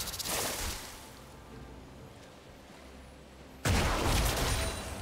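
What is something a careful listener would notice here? Blasts and clashes of a video game battle crackle loudly.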